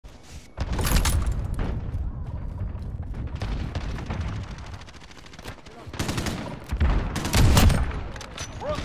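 Gunshots crack with a booming echo.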